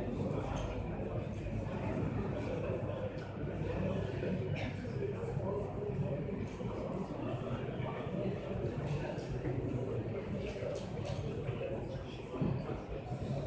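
A woman speaks steadily, as if teaching a class.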